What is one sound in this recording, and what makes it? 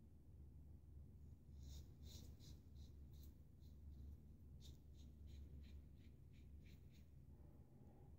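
A razor scrapes softly across stubble.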